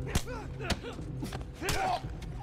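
Fists thump hard against a body in a fight.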